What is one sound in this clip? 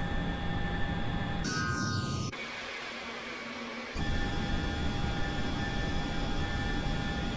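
A jet engine roars steadily, briefly dropping away and returning.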